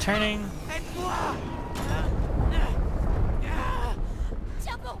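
Children grunt with effort.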